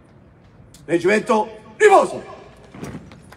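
A man shouts commands loudly across an open outdoor space.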